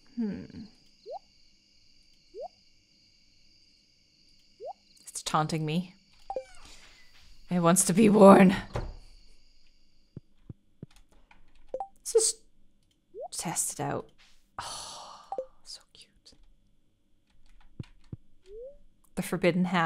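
Short game blips and chimes sound as menu items are picked.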